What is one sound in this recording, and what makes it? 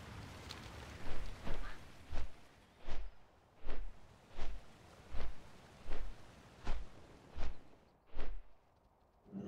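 Large wings flap in steady, heavy beats.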